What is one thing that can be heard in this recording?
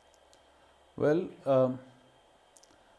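A second man speaks calmly into a close microphone.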